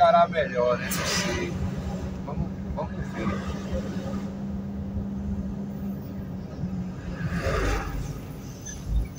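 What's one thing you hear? Oncoming trucks rush past with a whoosh.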